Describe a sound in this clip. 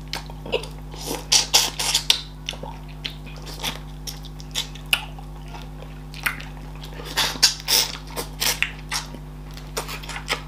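A woman chews and smacks her lips on soft, sticky food close to a microphone.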